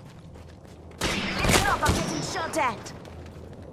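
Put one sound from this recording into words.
Gunshots crack and bang in quick bursts.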